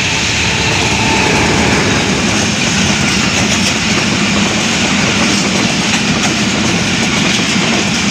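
Passenger coach wheels clatter over the rail joints at speed.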